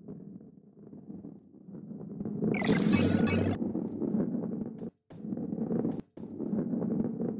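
A heavy ball rolls with a low rumble over a wooden track.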